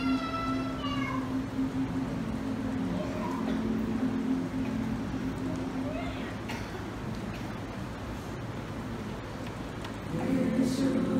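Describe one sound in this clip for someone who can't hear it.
A choir sings together in a reverberant hall.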